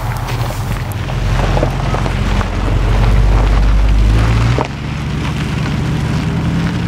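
A car engine revs hard as the car pulls away.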